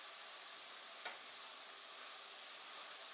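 A spatula scrapes and stirs food in a pan.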